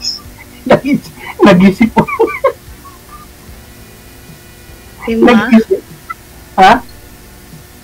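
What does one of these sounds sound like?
A woman talks over an online call.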